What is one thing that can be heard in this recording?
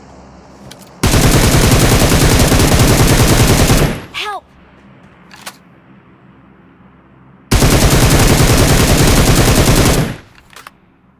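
An assault rifle in a video game fires.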